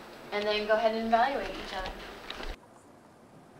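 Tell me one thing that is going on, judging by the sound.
A woman speaks clearly to a room.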